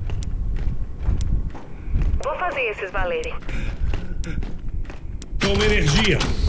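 Heavy armoured footsteps thud on a hard floor.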